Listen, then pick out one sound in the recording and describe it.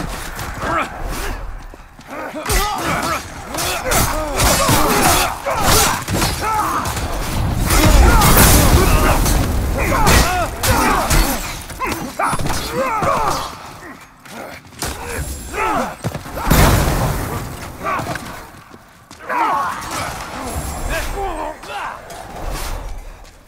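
Creatures grunt and shriek as they are struck.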